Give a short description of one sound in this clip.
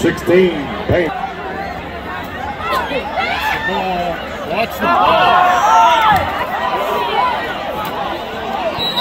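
Spectators nearby shout and call out loudly.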